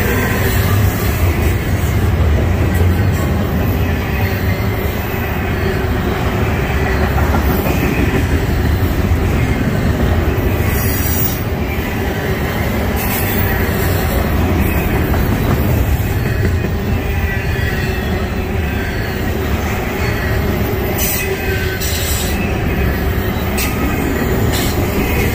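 Steel wheels clatter and click over rail joints.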